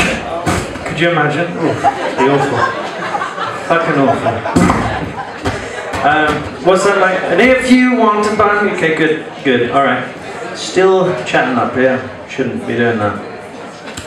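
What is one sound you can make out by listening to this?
A young man sings into a microphone through loudspeakers.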